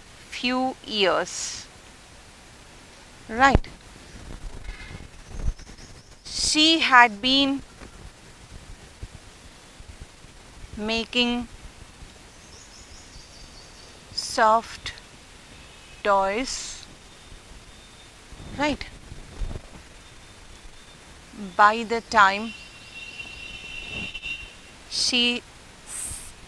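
A middle-aged woman speaks slowly and clearly, as if dictating, close by.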